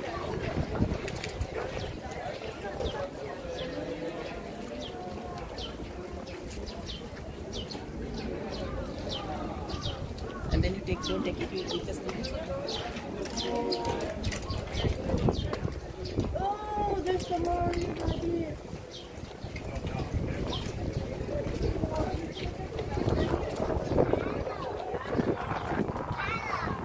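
A crowd of people chatters outdoors, near and far.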